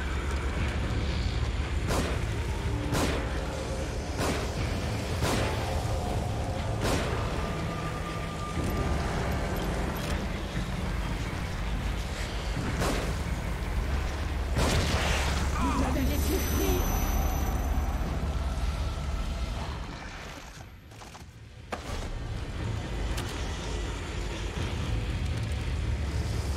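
A man talks into a close microphone with animation.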